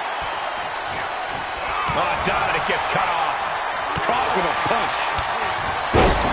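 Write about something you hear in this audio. Blows land with sharp smacks.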